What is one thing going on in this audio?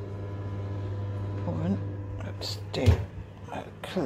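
An oven door clunks open.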